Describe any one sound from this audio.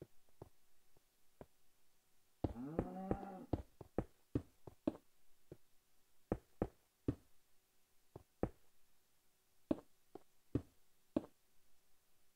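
Stone blocks are placed with short, dull knocks.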